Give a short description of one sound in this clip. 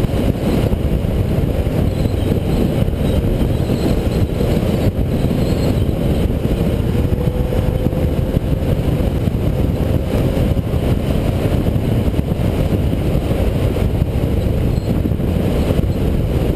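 Tyres rumble on the asphalt road.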